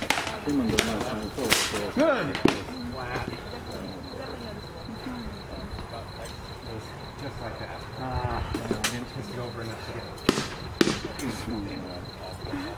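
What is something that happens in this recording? A man shouts and grunts from inside a helmet.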